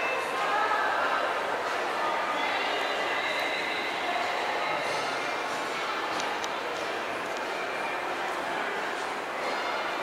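A crowd murmurs with voices echoing through a large hall.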